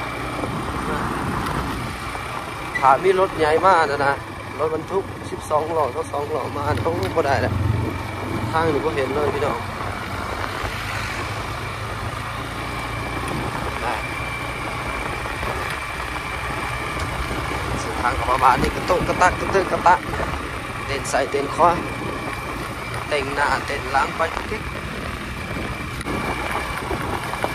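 A motorcycle engine hums steadily at low speed.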